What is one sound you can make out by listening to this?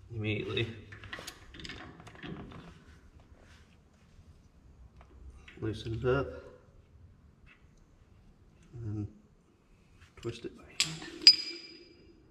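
Metal clinks as a wrench works on a wheel hub.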